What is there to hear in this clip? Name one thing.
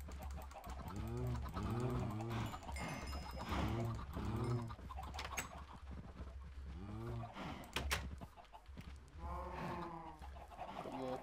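Cows moo in low, drawn-out calls.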